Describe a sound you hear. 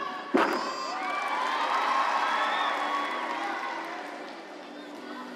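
A crowd applauds and cheers loudly.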